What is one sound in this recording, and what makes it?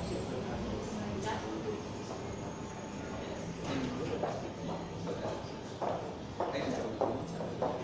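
A body slides and shifts across a hard floor.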